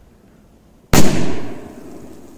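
A firework goes off with a loud bang outdoors and echoes away.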